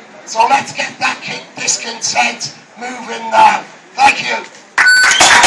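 A man speaks loudly outdoors to a crowd.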